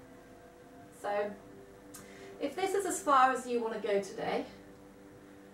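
A young woman speaks calmly and gently.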